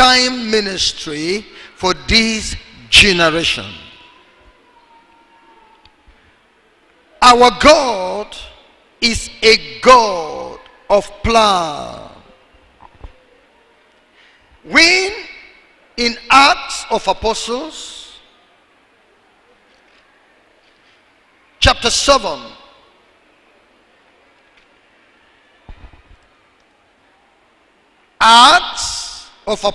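A man preaches into a microphone with animation, in bursts with pauses, heard through loudspeakers in a large echoing hall.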